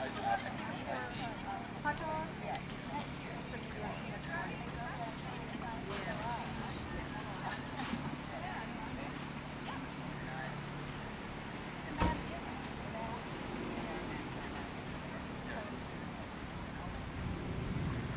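Several adults talk calmly nearby outdoors.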